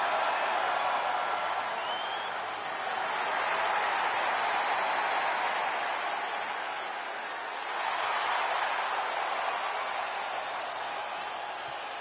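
A large crowd cheers and roars loudly in a big arena.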